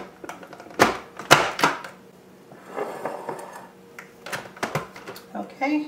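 A plastic lid clicks and snaps onto a food processor bowl.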